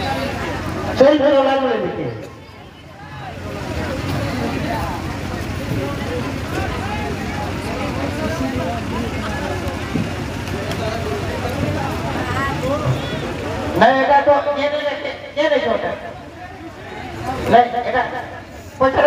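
A crowd of men chatters nearby.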